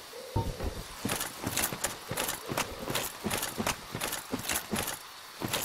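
Armoured footsteps clank quickly across the ground.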